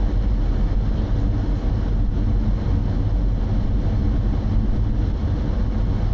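Tyres roll on the road with a low, steady rumble.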